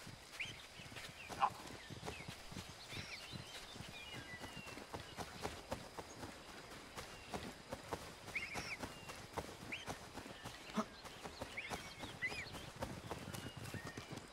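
Footsteps run quickly through grass and brush.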